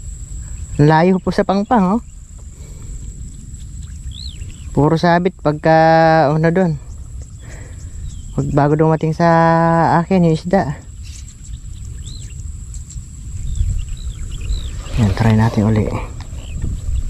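A hand-held duck call is blown in short, nasal quacking bursts.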